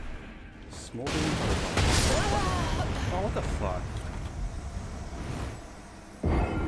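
A loud explosion bursts and roars.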